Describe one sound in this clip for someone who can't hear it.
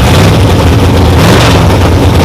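A race car engine revs up sharply.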